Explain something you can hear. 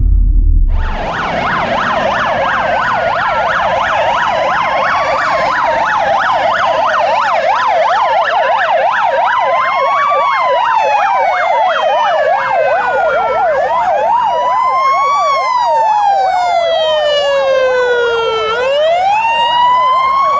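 A fire engine siren wails slowly up and down as it passes by.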